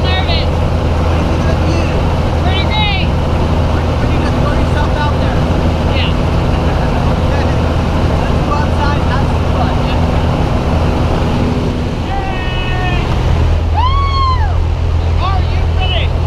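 An aircraft engine drones loudly and steadily close by.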